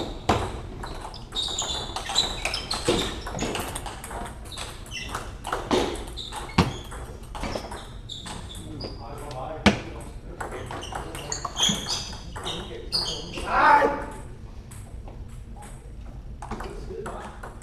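Table tennis balls click sharply on paddles and tables, echoing in a large hall.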